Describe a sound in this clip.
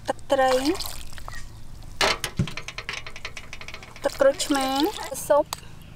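Liquid pours and splashes into a mortar.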